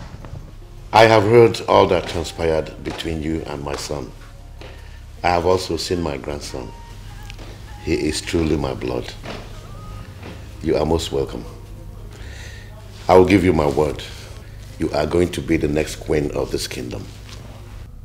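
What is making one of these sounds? An elderly man speaks warmly and cheerfully, close by.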